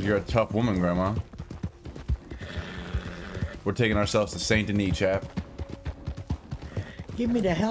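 A horse's hooves thud rapidly as it gallops.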